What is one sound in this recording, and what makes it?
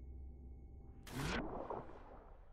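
A body drops and lands with a heavy thud.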